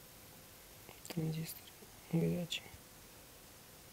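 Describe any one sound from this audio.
A hand handles small parts with light knocks.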